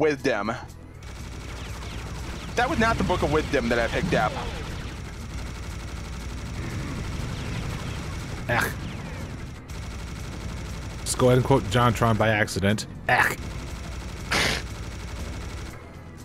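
A minigun fires in a rapid, steady stream of shots.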